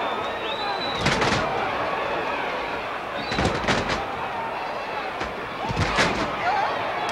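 Wrestlers' bodies thud onto a canvas wrestling ring.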